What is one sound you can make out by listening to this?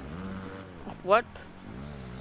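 A dirt bike engine screams sharply upward in a short burst.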